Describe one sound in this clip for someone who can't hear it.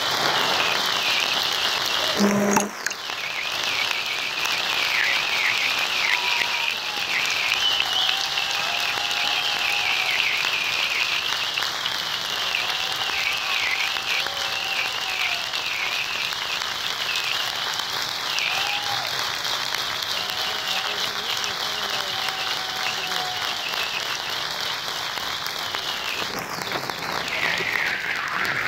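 An audience claps loudly and steadily in a large hall.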